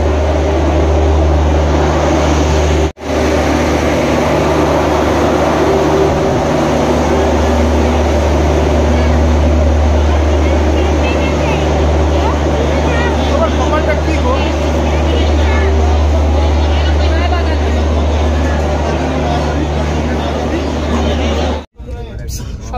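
A train's engine hums steadily nearby.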